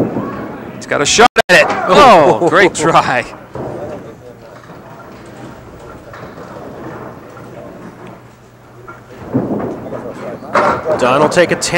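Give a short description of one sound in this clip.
Wooden pins clatter as a ball crashes into them.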